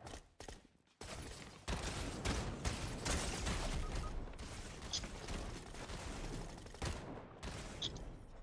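A pickaxe swooshes and thuds in a video game, heard through a television speaker.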